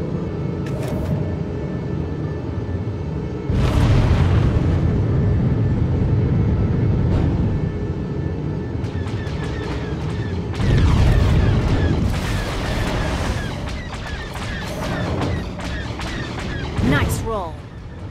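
A spacecraft engine roars steadily.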